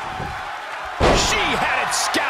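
A body slams hard onto a wrestling ring mat with a loud thud.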